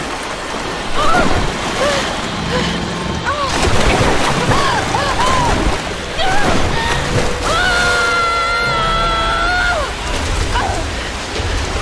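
A young woman gasps and cries out in strain.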